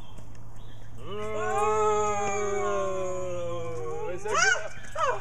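A young man sings loudly, holding long drawn-out notes.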